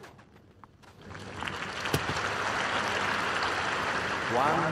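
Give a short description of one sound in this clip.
A crowd applauds and cheers.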